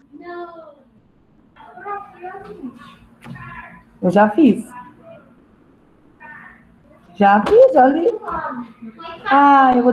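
A woman speaks with animation through a muffled mask, heard over an online call.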